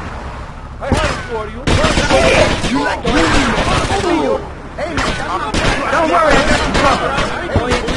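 Guns fire in rapid bursts during a shootout.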